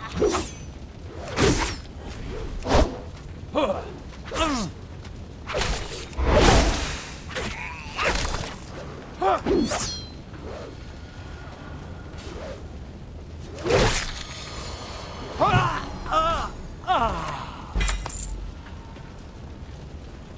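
Weapons strike and clash in a fight.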